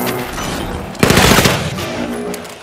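A grenade bursts with a loud, rushing blast.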